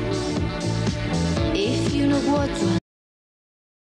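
Music with singing women plays through a television speaker.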